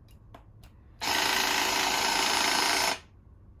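An electric motor whirs steadily.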